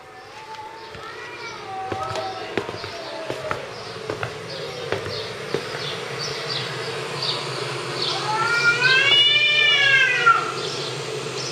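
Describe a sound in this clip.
Cats yowl and growl through a television speaker.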